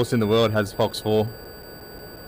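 A man speaks briefly with animation through a microphone.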